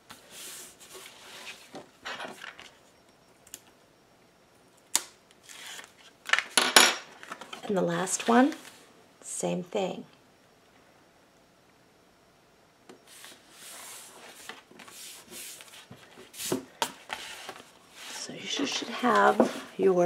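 Paper rustles and crinkles as sheets are handled close by.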